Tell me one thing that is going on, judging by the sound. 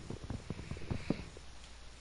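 Leaf blocks crunch and rustle as they are broken.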